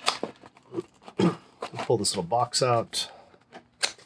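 A lid slides off a cardboard box with a soft scrape.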